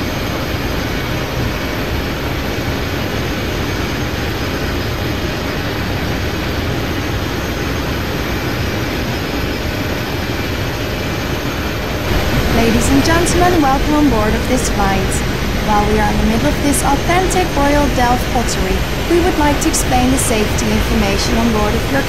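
A jet engine hums steadily close by.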